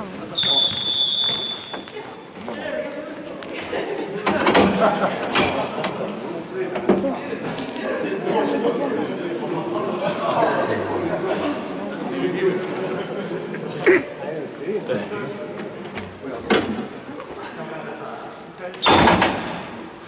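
Young players shout and call out to each other in an echoing hall.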